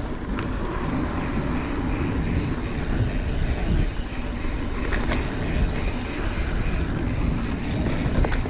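A bicycle frame rattles and clicks over bumps.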